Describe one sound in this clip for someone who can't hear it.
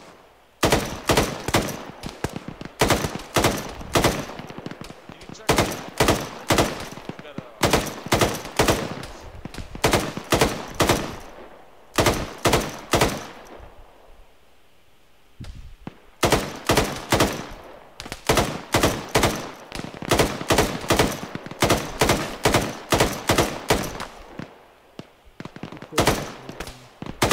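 Rifle shots crack in rapid bursts, each followed by a rolling echo.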